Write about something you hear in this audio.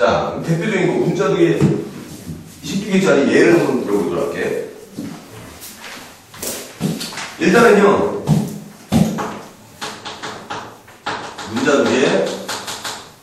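A man lectures with animation in a room with a slight echo.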